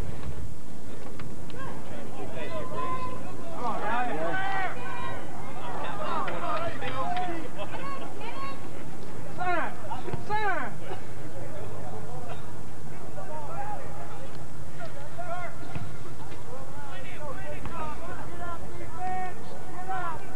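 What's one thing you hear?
A crowd of spectators shouts and cheers nearby outdoors.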